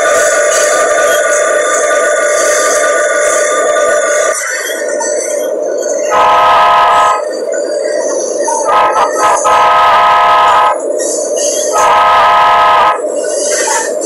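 A diesel locomotive engine drones steadily as the train rolls along.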